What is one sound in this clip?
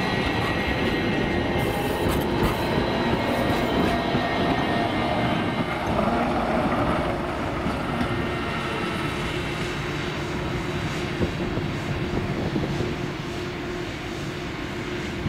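A tram rumbles and whines close by as it passes and then pulls away.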